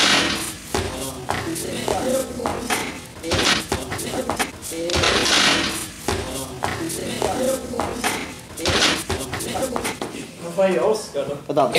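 Shoes scuff and tap on a hard floor.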